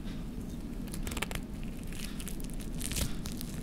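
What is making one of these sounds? Crispy fried chicken crunches as it is torn apart by hand.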